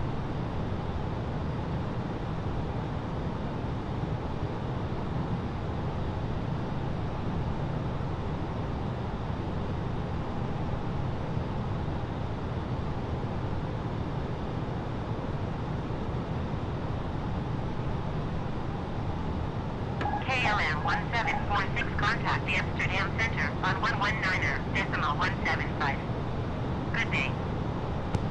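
Jet engines drone in a low, steady rumble.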